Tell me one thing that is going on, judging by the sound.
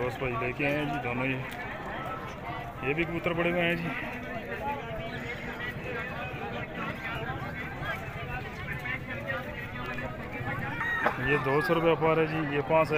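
A crowd of men talks and chatters loudly nearby, outdoors.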